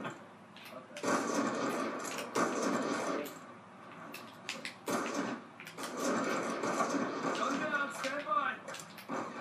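Gunfire from a video game rattles through a television speaker.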